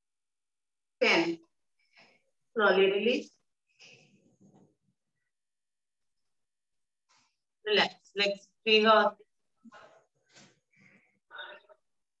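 A young woman speaks calmly and clearly, close by, in short phrases.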